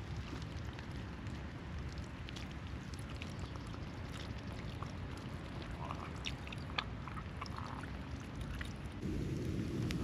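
Water pours from a bottle and splashes onto dry leaves.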